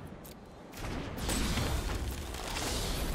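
A fiery burst booms.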